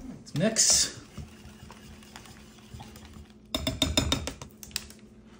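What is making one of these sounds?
A whisk clinks against a glass bowl as eggs are beaten.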